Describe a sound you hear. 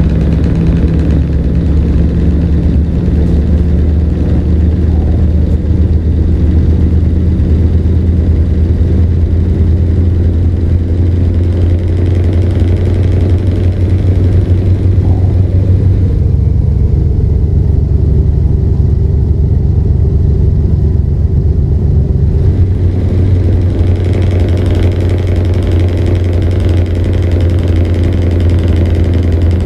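A truck's diesel engine drones steadily, its pitch shifting slightly with speed.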